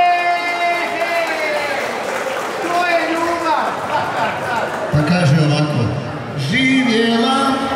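A band plays lively accordion music over loudspeakers.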